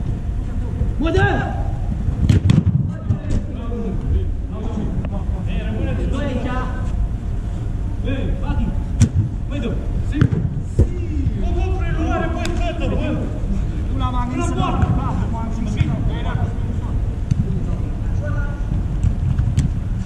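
Men shout to each other during a football match in a large echoing hall.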